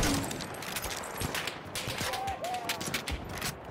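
A gun's metal parts click and clack as it is reloaded.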